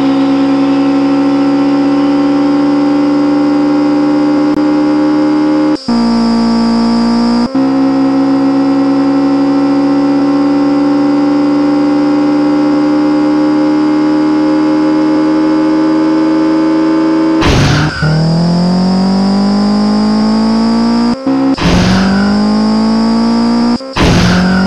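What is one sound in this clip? A racing car engine roars at high speed, dropping and climbing in pitch as it shifts gears.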